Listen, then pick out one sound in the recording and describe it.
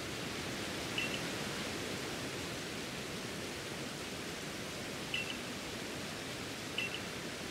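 A short electronic chime blips several times.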